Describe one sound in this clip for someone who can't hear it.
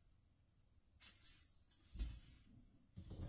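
Slippers shuffle on a hard floor.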